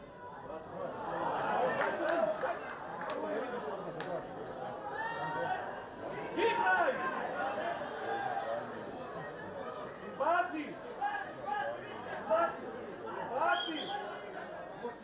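Football players shout to each other across the pitch.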